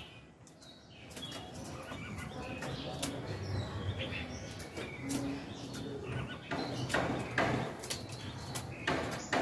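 A small bird flutters and hops in a cage.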